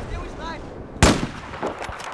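A rifle fires a single loud, sharp shot.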